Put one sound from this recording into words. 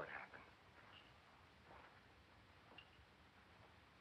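A man's footsteps sound softly on a hard floor.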